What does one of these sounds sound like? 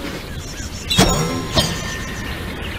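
A short game jingle chimes.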